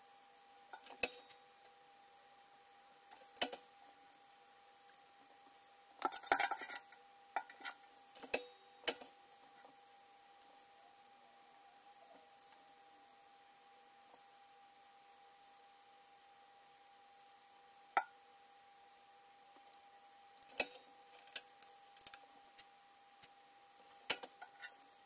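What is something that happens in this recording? A heat press lid clunks shut and snaps open.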